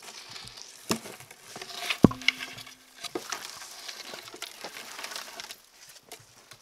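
Footsteps crunch and branches rustle as a man walks through brush.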